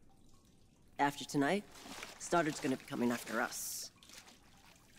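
A woman answers calmly up close.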